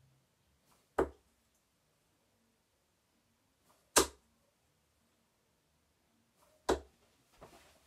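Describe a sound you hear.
Darts thud sharply into a dartboard.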